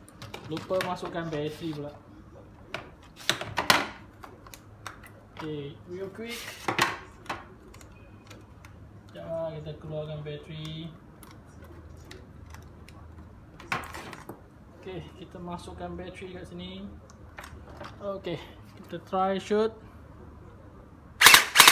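Plastic rifle parts clack and knock against a table.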